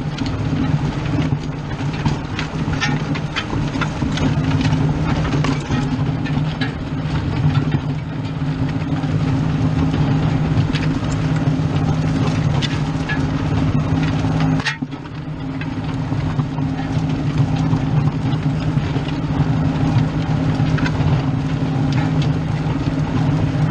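A disc harrow rattles and clanks as it drags through dry soil.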